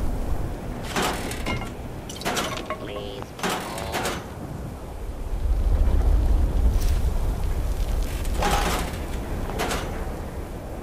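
A metal locker door clanks open.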